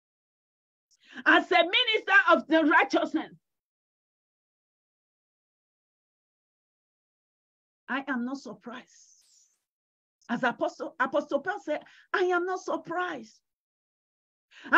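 A middle-aged woman speaks with feeling over an online call, pausing between phrases.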